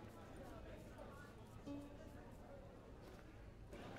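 A lute is strummed softly.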